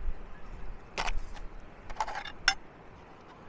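A metal spoon scrapes in a foil tray.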